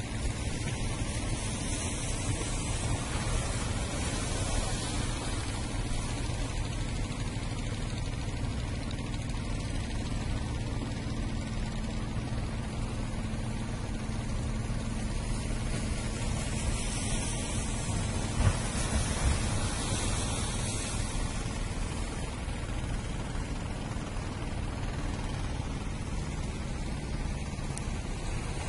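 Water laps and splashes steadily outdoors in wind.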